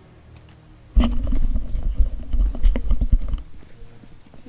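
Footsteps run over a hard floor.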